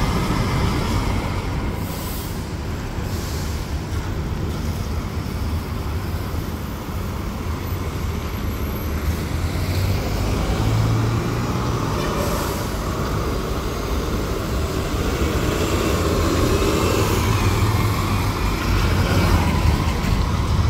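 A bus engine rumbles as a bus drives past close by.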